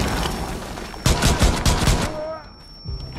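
A pistol fires several rapid shots.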